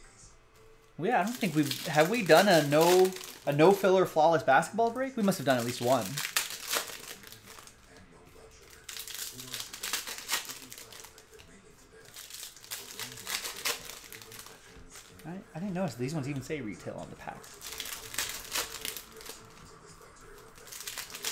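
Foil card packs crinkle and rustle as they are torn open.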